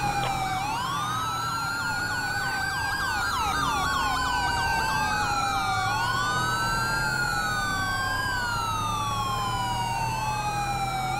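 Police sirens wail, rising and falling over one another.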